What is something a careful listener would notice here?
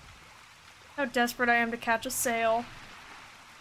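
A young woman talks casually into a microphone close by.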